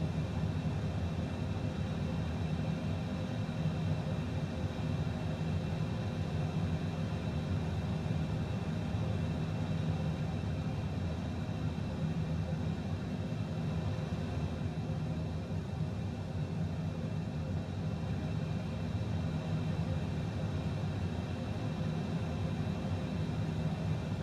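A jet engine hums steadily nearby.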